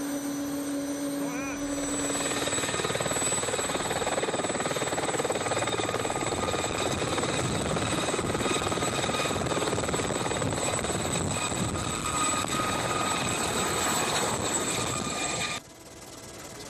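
A helicopter's rotor and engine roar loudly close by.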